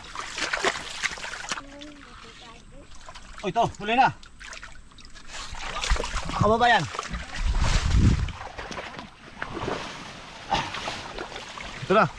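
Water splashes as hands scoop in a shallow stream.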